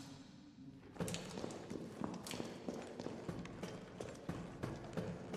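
Footsteps clang on a metal grating.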